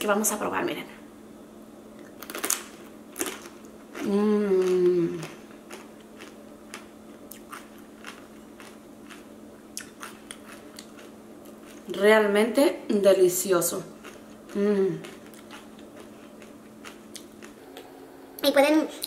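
A woman crunches a crisp chip while chewing.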